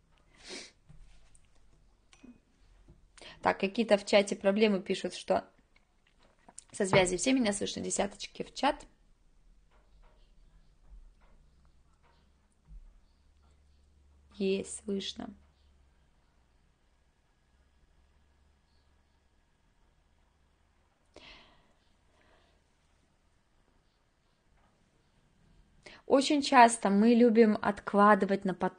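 A woman speaks calmly into a close microphone, in short phrases with pauses.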